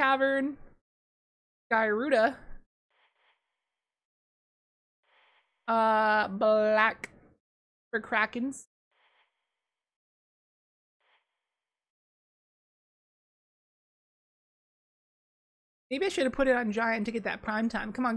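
A young woman talks with animation into a close microphone, in short bursts with pauses.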